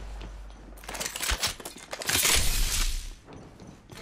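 A weapon clicks and rattles as it is picked up.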